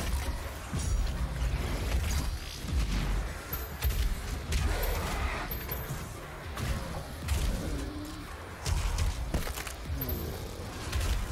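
Gunfire blasts rapidly in bursts.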